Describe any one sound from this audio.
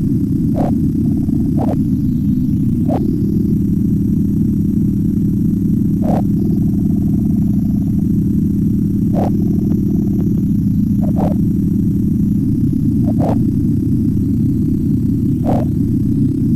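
A small car engine buzzes steadily as an electronic, game-like drone.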